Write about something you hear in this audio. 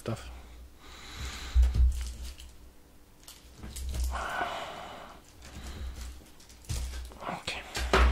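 A knife cuts through soft burgers.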